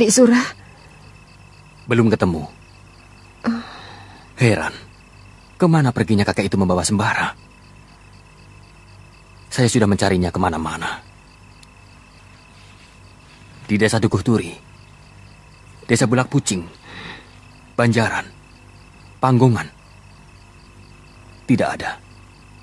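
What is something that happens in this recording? A man speaks quietly and tensely, close by.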